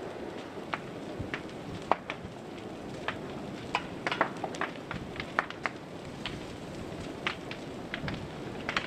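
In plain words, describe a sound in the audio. A large fire roars steadily.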